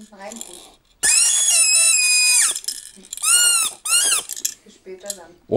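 A toy whistle blows shrill, wavering tones.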